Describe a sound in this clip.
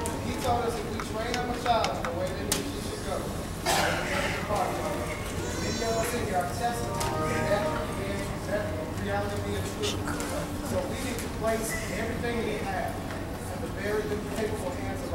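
A man speaks calmly in a large, echoing hall.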